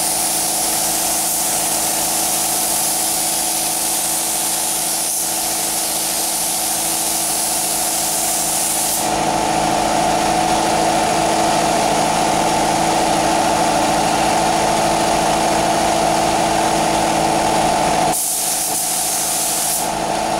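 A spray gun hisses steadily as paint is sprayed.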